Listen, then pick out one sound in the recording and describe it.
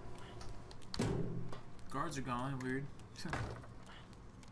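A door opens and swings shut.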